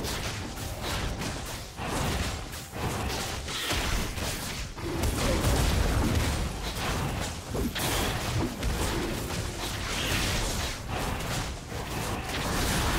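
Fantasy battle sound effects clash and crackle as creatures fight.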